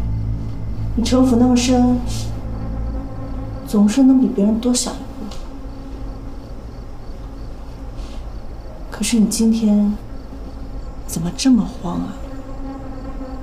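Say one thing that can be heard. A young woman speaks coolly and closely.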